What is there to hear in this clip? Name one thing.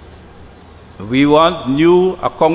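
An elderly man speaks slowly and firmly into a microphone.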